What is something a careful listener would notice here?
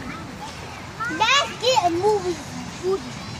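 A young girl speaks in a high, animated voice close by.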